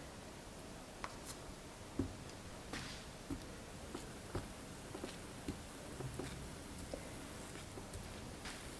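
Soft cakes are set down with light taps on a metal griddle pan.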